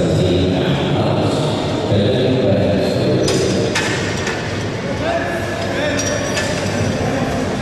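A crowd murmurs and talks in a large echoing hall.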